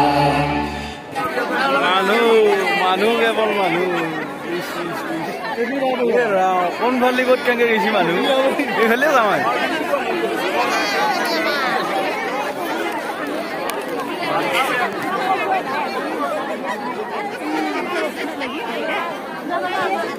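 A large crowd of men and women chatters and calls out nearby.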